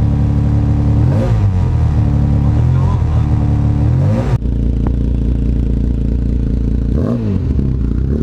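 A car engine revs up sharply and drops back a few times.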